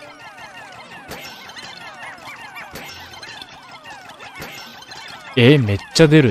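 Many small game creatures chirp in quick, high, sliding squeaks.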